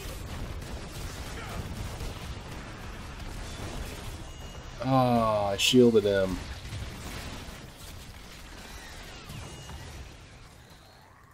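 Game battle effects clash and crackle.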